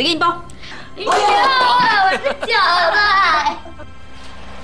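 A young girl speaks excitedly in a high voice.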